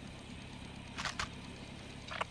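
A rifle is handled with sharp metallic clicks.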